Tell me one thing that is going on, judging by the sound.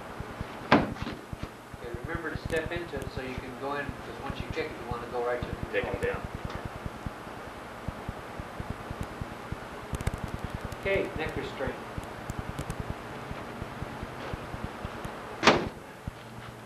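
A strike thumps against a padded shield.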